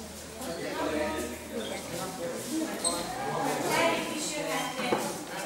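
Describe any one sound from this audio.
Children chatter and talk over one another nearby.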